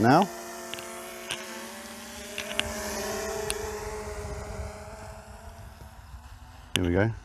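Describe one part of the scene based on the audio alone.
A small drone's propellers buzz as it lifts off and flies away.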